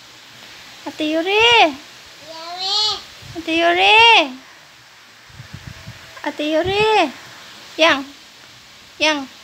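A young girl speaks nearby in a high, singsong voice.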